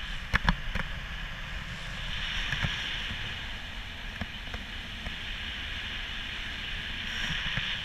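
Wind rushes and buffets steadily past, high up in the open air.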